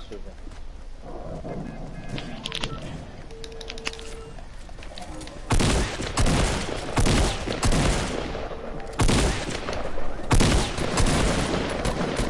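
Footsteps patter quickly on hard ground as a game character runs.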